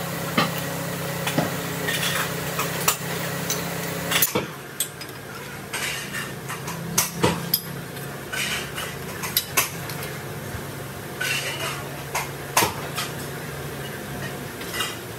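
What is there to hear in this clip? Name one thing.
Steel rods clank and knock sharply against a metal bending machine.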